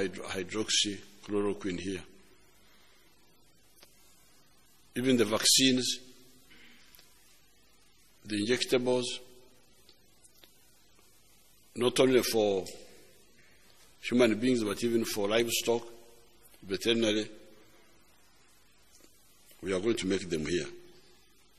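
An elderly man speaks slowly into a microphone, pausing between phrases.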